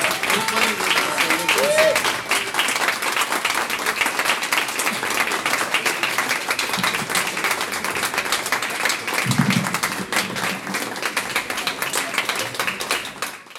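An audience claps loudly and steadily.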